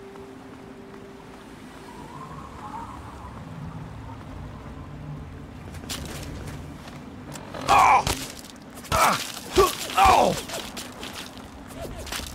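Footsteps crunch over gravel and rubble.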